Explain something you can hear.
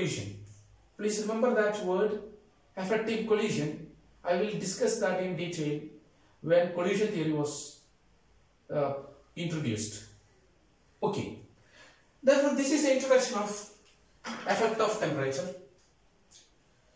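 A man speaks calmly and clearly, close by, as if explaining.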